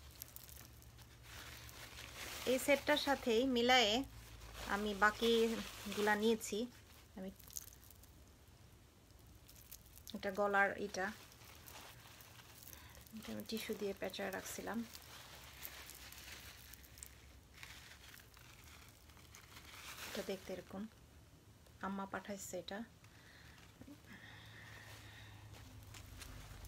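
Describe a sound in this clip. Beaded jewellery clinks and rustles as it is handled.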